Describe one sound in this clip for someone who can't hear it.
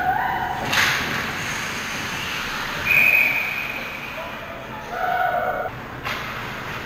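Skates scrape and carve across the ice in an echoing rink.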